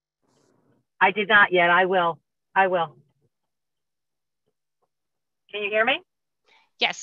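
A second woman answers briefly over an online call.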